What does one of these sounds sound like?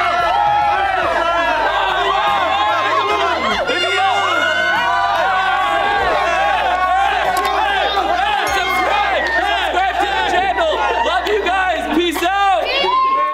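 A young man shouts with excitement.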